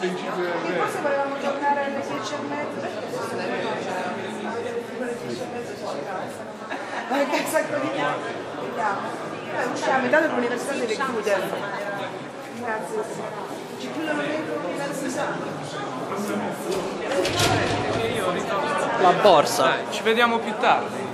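A crowd murmurs in an echoing hall.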